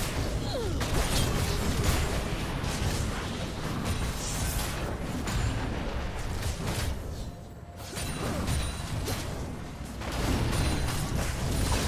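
Spell effects whoosh and crackle in a game battle.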